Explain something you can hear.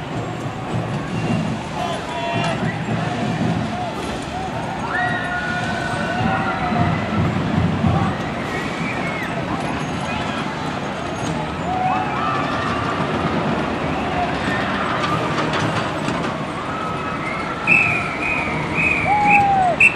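Drums beat in a marching rhythm.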